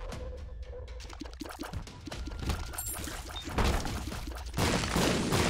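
Rapid soft popping shots fire in a video game.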